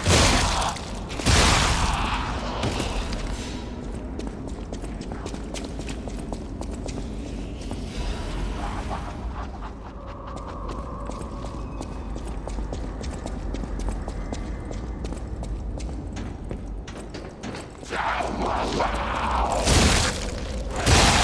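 Sword blows slash and strike a creature.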